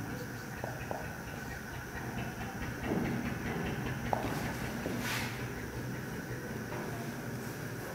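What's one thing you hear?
A marker squeaks and scratches across a whiteboard.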